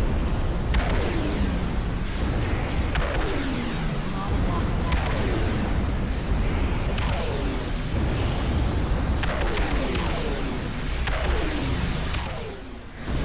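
A laser beam fires repeatedly with falling zaps.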